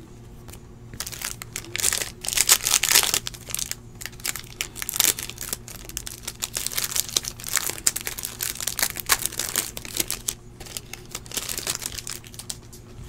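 A plastic wrapper crinkles and rustles as hands tear it open.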